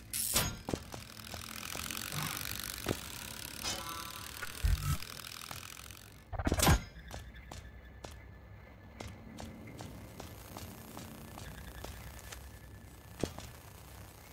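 Small footsteps patter quickly and lightly.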